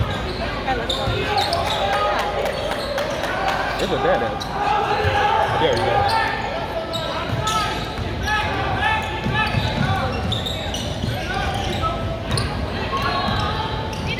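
A crowd of spectators chatters and calls out, echoing in a large hall.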